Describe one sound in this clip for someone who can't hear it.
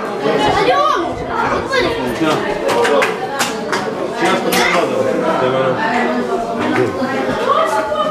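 Several men talk over one another nearby, greeting with animation.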